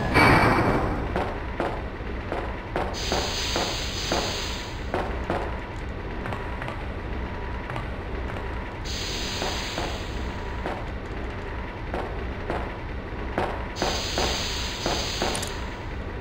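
Footsteps thud steadily on a metal floor.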